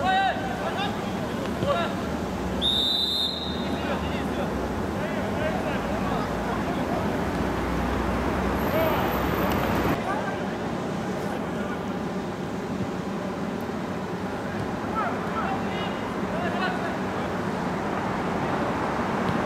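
A crowd of spectators murmurs and chatters nearby.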